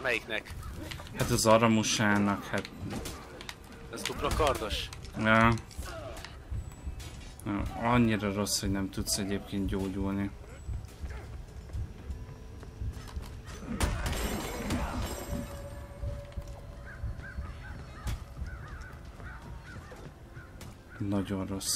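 Swords clash and clang in a game fight.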